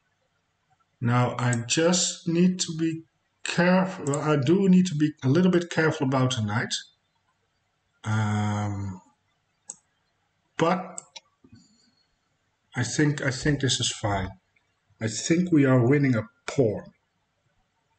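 A man talks calmly and thoughtfully into a close microphone, with pauses.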